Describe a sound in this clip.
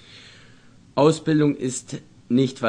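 An elderly man reads aloud calmly, close by.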